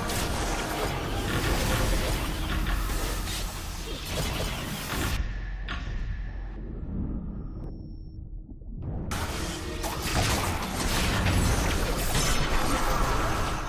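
Magic blasts and weapon strikes clash in a fast fight.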